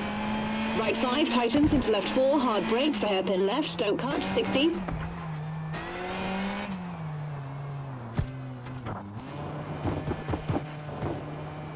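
Tyres skid and crunch on gravel.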